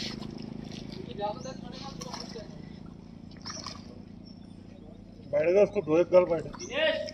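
A fish splashes and thrashes at the water's surface.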